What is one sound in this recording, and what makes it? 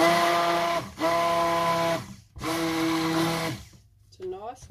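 A hand blender whirs loudly in short bursts.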